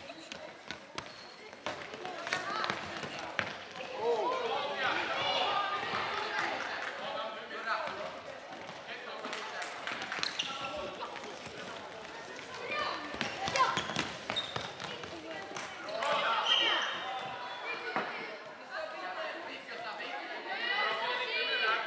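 Children shout and call out to each other across an echoing hall.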